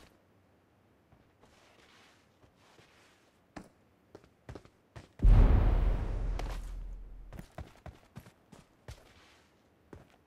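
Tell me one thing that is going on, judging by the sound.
Footsteps crunch over a roof and grass.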